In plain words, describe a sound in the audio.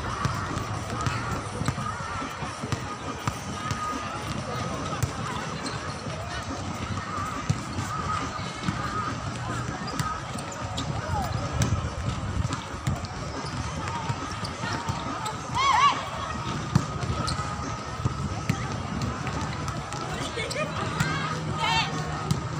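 Young women call out and shout to each other during play.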